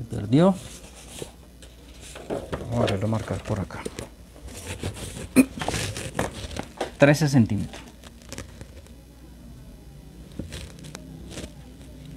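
A pencil scratches on paper along a ruler.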